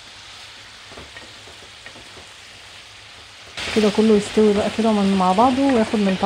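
A wooden spoon scrapes and stirs food in a pan.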